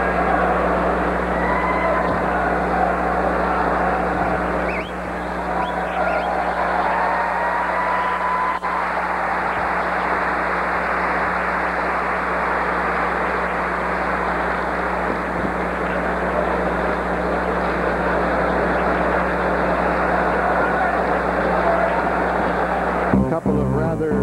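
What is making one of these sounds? A large crowd cheers loudly in an echoing arena.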